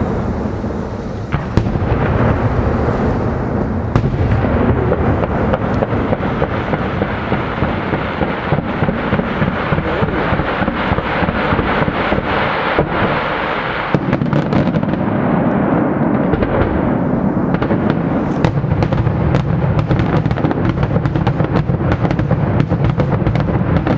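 Aerial shells burst with loud bangs in the sky.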